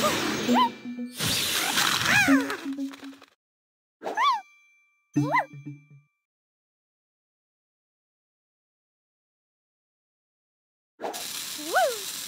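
Short rising and falling chime tones ring out in quick bursts.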